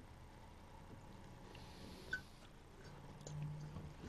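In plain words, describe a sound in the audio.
A man gulps a drink from a bottle.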